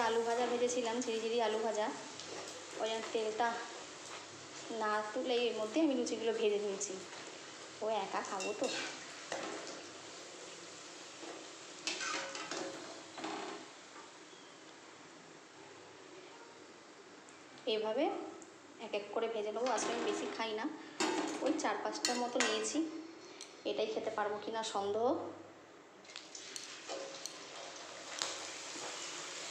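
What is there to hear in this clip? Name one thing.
Hot oil sizzles and bubbles steadily as dough fries.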